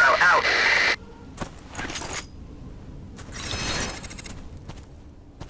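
A rifle fires rapid bursts of shots.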